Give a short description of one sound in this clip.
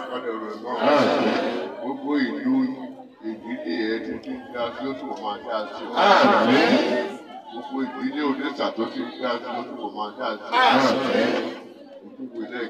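A crowd shouts and cheers in short bursts.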